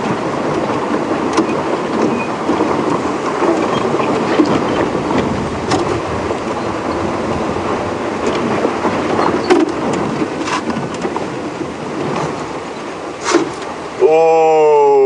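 A vehicle engine rumbles steadily as it drives over rough ground.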